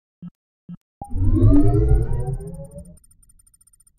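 A loud rising chime sweeps up as a menu opens.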